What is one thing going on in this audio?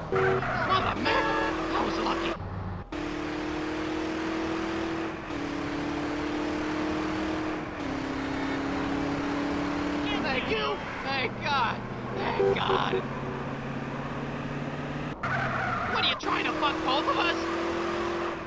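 Tyres screech as a car skids sideways.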